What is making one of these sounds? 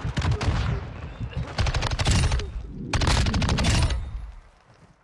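Automatic gunfire rattles in rapid bursts in a video game.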